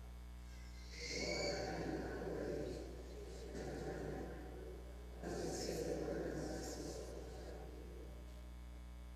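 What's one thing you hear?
A group of people respond together in low voices.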